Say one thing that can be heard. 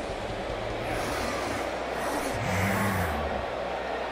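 A stadium crowd roars in a cheer.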